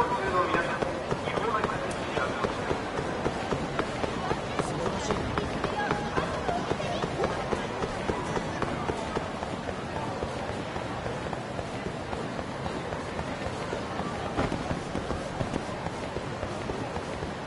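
Quick running footsteps slap on pavement.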